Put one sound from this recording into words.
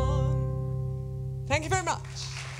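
A small jazz band holds a final chord.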